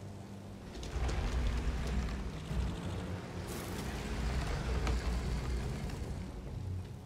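A heavy wooden door grinds and rumbles as it is pushed open.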